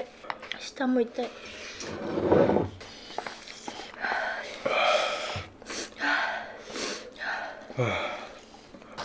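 A young man slurps noodles loudly up close.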